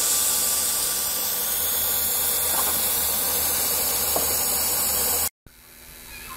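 Steam hisses steadily from a small valve.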